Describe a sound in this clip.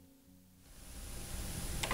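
A button clicks on a cassette deck.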